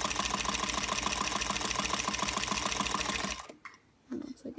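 A sewing machine runs fast with a rapid, steady whirring stitch.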